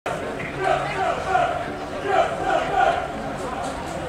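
Young men talk and call out nearby outdoors.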